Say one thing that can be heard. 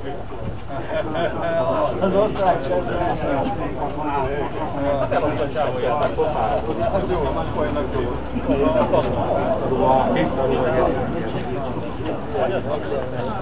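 Elderly men chat with one another outdoors.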